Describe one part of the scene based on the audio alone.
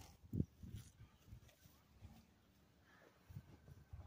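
A calf snuffles and breathes close by.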